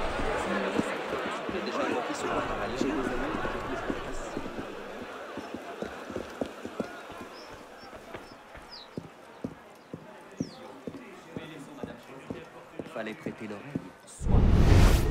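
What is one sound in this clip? Quick footsteps run across stone.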